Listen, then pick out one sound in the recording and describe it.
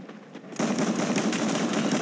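Footsteps clatter on metal stairs.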